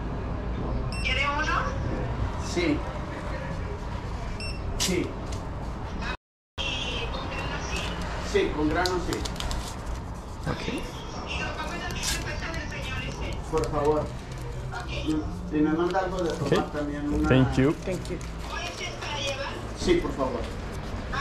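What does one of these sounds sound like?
A woman talks calmly across a counter, close by.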